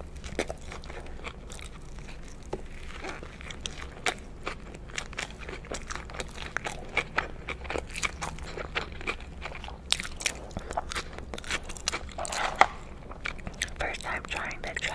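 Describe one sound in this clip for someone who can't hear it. A woman chews food wetly and crunchily close to a microphone.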